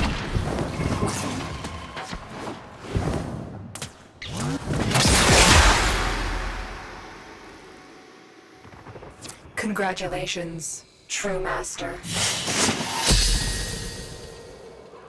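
Video game sound effects whoosh and thud.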